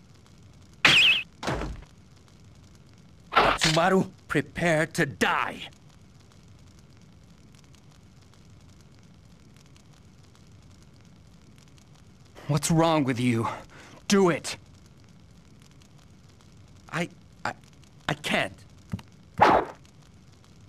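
A sword swishes and strikes.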